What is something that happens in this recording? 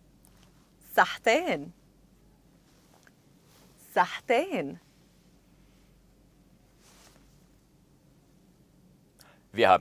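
A woman says short words slowly and clearly into a microphone.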